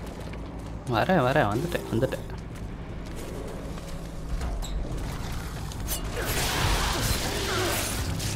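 A creature growls and snarls close by.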